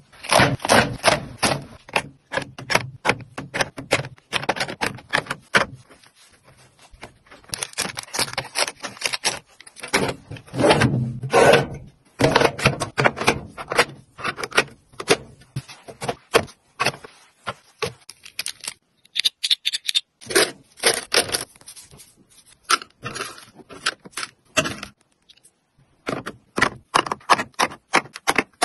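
Packets and small items clatter softly as they are placed into a drawer.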